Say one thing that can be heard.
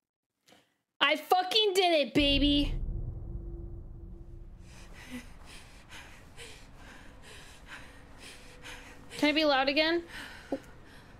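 A young woman whines and exclaims loudly into a close microphone.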